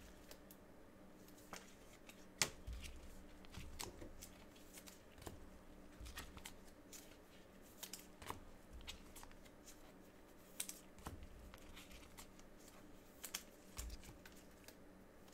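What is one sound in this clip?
Packaging crinkles and clicks close by as it is handled.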